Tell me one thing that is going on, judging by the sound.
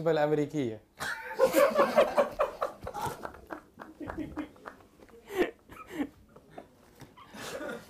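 Men laugh loudly nearby.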